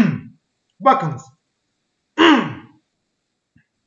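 A man speaks in short bursts through a microphone.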